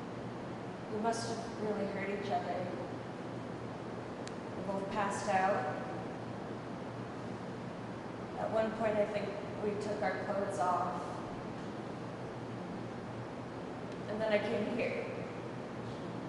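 A woman speaks softly and emotionally, close by.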